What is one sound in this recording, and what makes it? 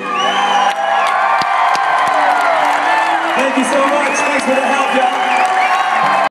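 A band plays live music through loud speakers.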